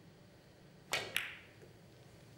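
Billiard balls click against each other.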